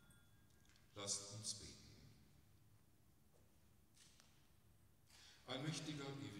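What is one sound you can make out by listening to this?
An older man speaks through a microphone in a large echoing hall.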